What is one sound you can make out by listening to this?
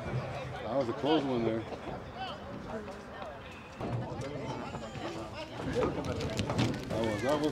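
Young men shout and call out outdoors.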